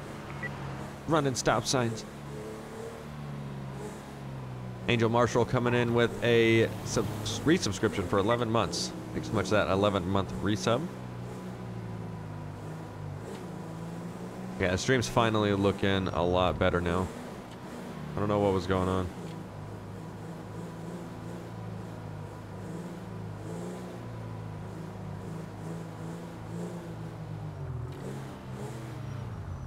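A car engine hums steadily as a vehicle drives along a road.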